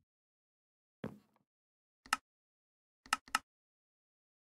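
Short clicks sound as items are picked up.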